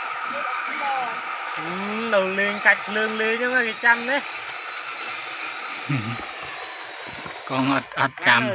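A toy excavator's electric motor whirs.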